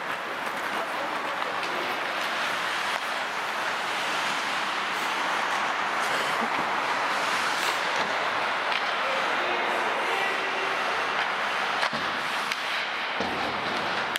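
Skate blades scrape and hiss across ice in a large echoing hall.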